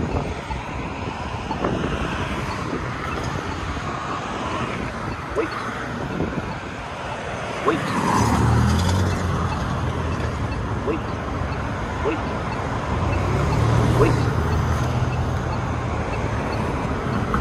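A hand presses a crosswalk button with a click.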